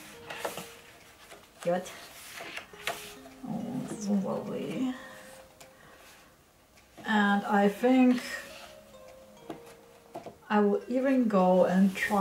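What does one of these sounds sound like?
Stiff paper pages turn with a soft rustle.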